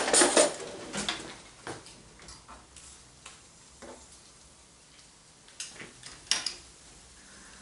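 A utensil clinks and scrapes against a pan.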